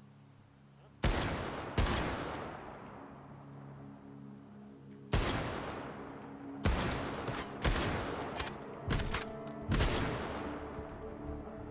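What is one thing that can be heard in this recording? A gun fires loud shots that ring out and echo.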